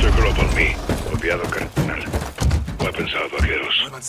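Boots crunch on gravel.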